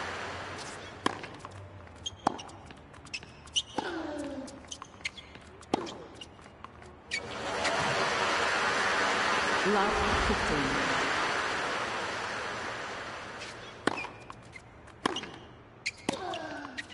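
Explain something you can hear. A tennis ball is struck sharply by rackets in a rally.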